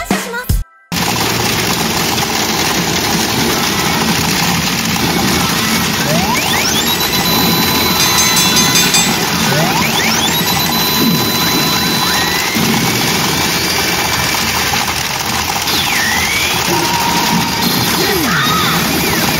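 Small steel balls clatter and rattle through a pachinko machine.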